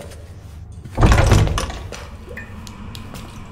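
A heavy door swings open with a loud rush.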